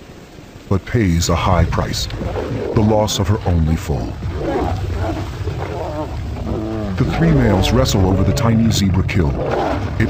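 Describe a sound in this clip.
Lions roar and snarl as they fight.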